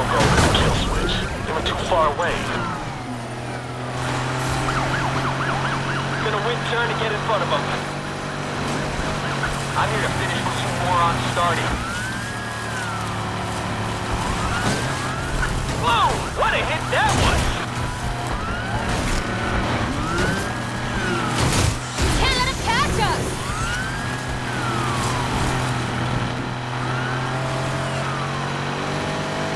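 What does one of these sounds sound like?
Police sirens wail, rising and falling over and over.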